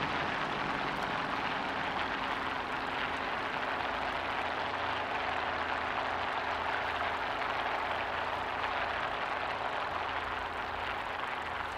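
A propeller plane's engine idles with a steady droning roar.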